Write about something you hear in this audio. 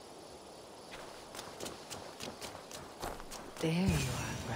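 Footsteps patter quickly on soft ground.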